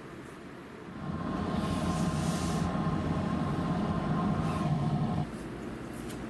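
A steam iron hisses steadily.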